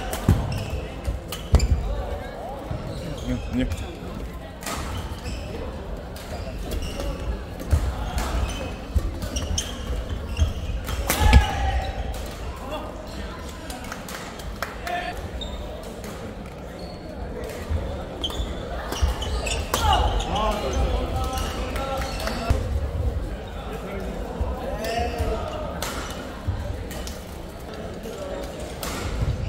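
Shoes squeak and thud on a wooden court.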